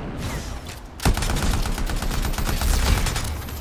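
Electricity crackles and zaps loudly.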